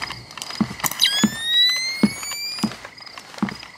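Night-vision goggles power up with a rising electronic whine.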